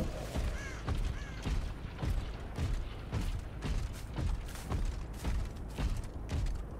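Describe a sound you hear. Heavy footsteps thud at a steady walking pace.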